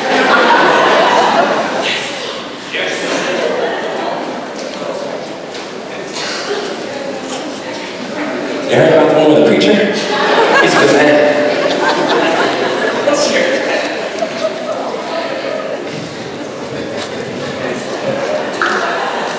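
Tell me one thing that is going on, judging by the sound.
A large choir of young men and women sings together in a large hall.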